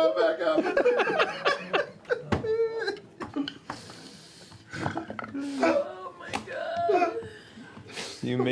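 Several men and women laugh loudly together over microphones.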